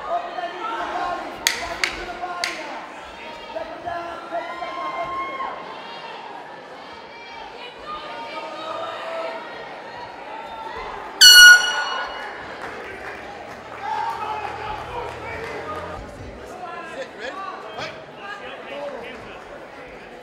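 A crowd of men and women shouts and cheers in a large echoing hall.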